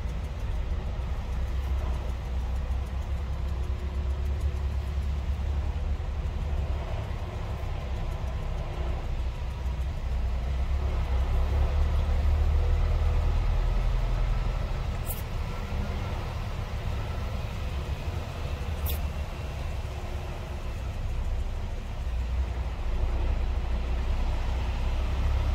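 A truck engine rumbles low and steady from inside the cab.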